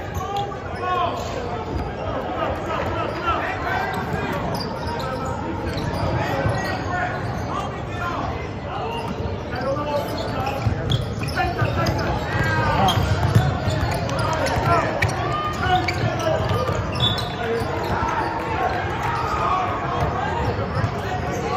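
A crowd of spectators chatters and shouts, echoing in a large hall.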